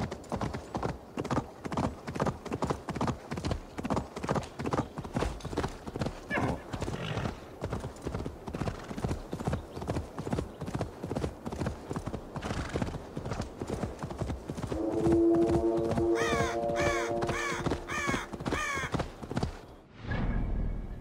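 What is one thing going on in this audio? A horse's hooves thud in a quick, steady gallop on a dirt track.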